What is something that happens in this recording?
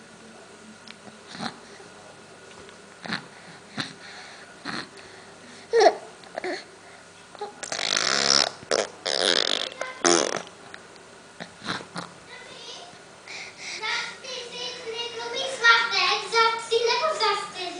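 A spoon scrapes and clicks against a baby's lips.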